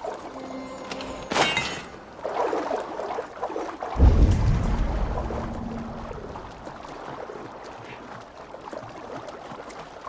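Water splashes and sloshes around a swimmer.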